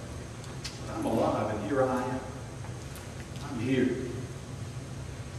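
An older man speaks slowly and emphatically through a microphone in a reverberant hall.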